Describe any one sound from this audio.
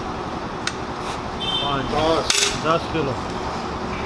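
A metal cup clinks against a metal can.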